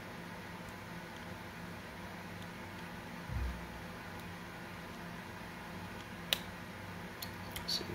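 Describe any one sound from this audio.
A small screwdriver turns screws into plastic.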